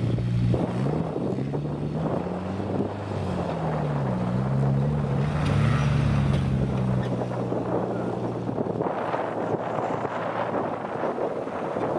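Tyres rumble over bumpy grass.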